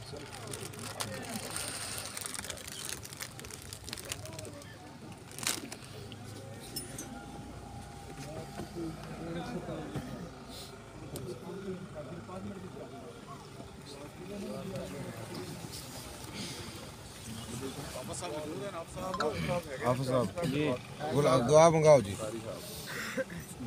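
A crowd of men talks and murmurs close by.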